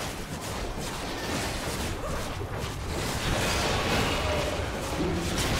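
Fantasy battle effects clash and crackle as spells and blows hit.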